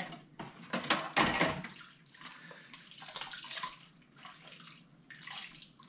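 Dishes clink and scrape in a sink.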